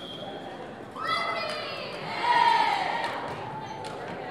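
A crowd of young women cheers and shouts.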